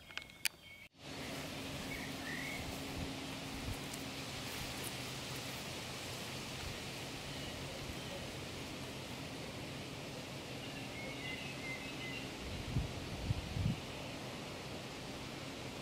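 Wind blows steadily outdoors over open ground.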